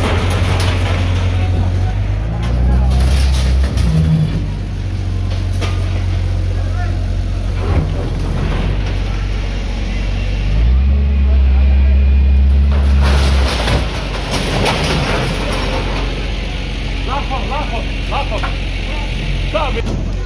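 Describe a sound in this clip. A loader's diesel engine rumbles and revs up close.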